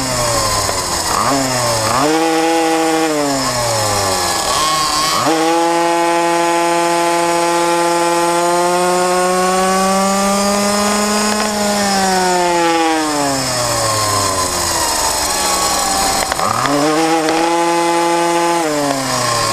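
A small motorcycle engine whines loudly close by, rising and falling in pitch as it shifts gears.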